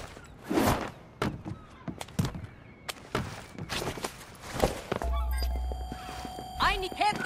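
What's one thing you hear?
Footsteps thud and scuff on a hard surface.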